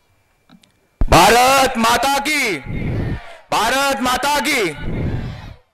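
A man speaks loudly through a loudspeaker in a large space.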